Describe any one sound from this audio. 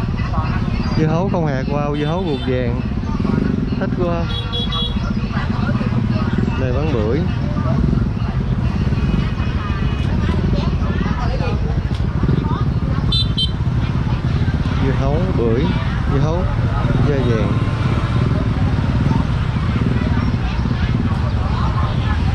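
Men and women chatter around in a busy outdoor crowd.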